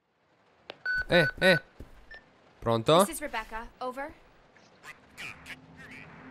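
A young woman speaks calmly into a radio.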